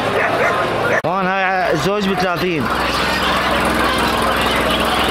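Hens cluck and murmur in a crowded flock.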